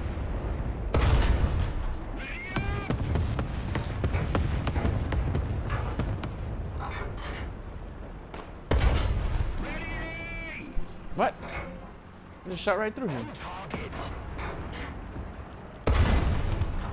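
A tank cannon fires with a loud, echoing boom.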